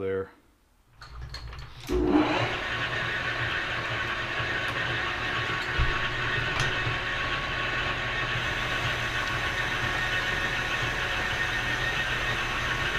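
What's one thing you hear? A lathe motor starts up and runs with a steady hum.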